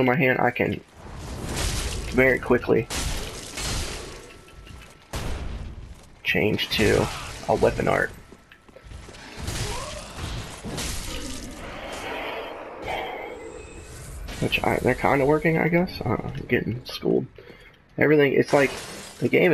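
Swords clash and ring with metallic strikes.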